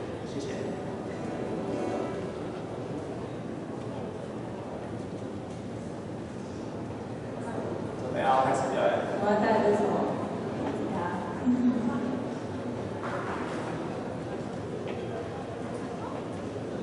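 Acoustic guitars strum softly through a loudspeaker in a hall.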